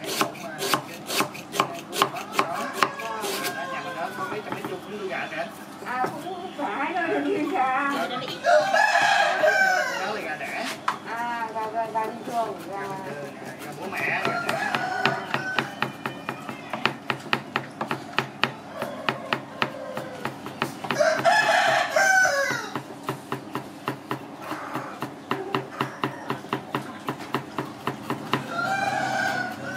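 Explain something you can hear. A cleaver chops rapidly on a wooden board.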